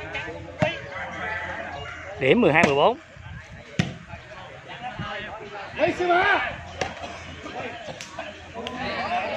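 A ball is struck hard with a sharp slap, several times.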